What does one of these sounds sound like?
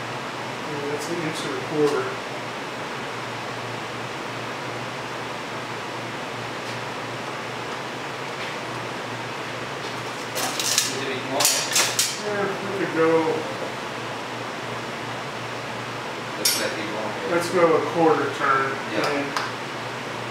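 Metal tools clink against a motorcycle part.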